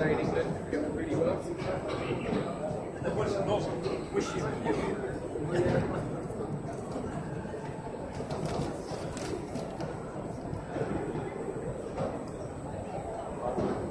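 Many people talk in a low, steady murmur around a large, echoing hall.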